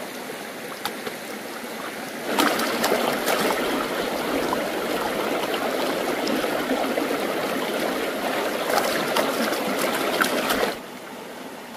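Water splashes and sloshes as hands rinse something in a stream.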